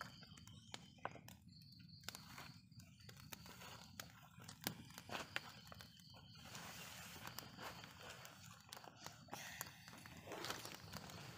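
A plastic spoon scrapes soil in a toy pot.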